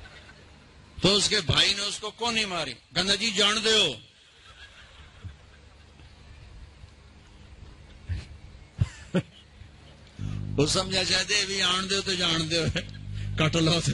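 An elderly man preaches with animation through a microphone.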